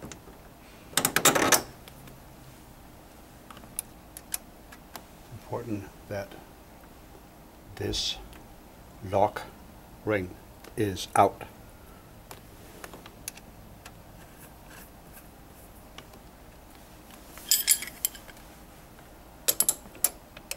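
Metal parts of a massage chair frame clink and rattle under hands.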